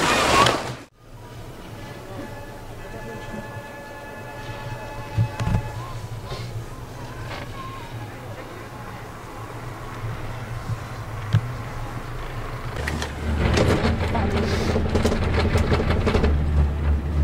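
A gondola cabin hums and rumbles as it moves along its cable.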